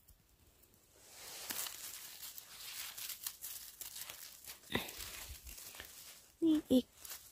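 Leaves and stems rustle softly as a hand reaches through low plants.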